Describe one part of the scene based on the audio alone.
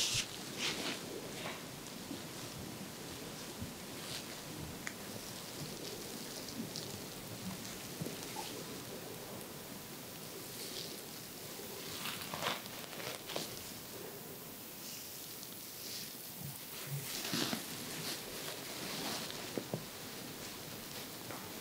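Fingers rub softly on skin and hair close by.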